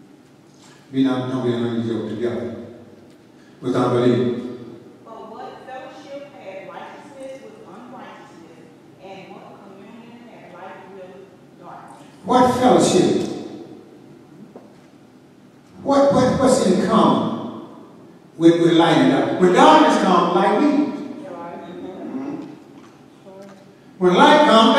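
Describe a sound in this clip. A man preaches loudly through a microphone in a large echoing hall, in bursts with pauses.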